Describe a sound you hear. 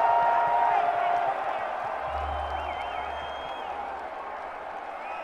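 A large crowd cheers and whistles in a big echoing arena.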